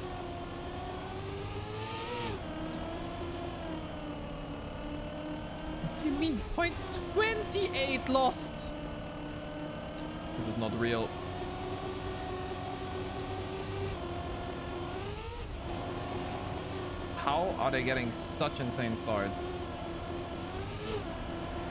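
A racing car engine hums and whines steadily, rising and falling in pitch.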